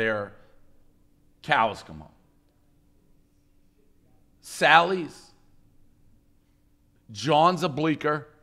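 A middle-aged man speaks in short bursts into a microphone.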